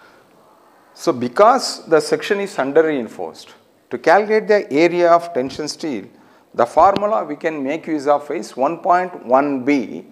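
An elderly man lectures with animation through a microphone.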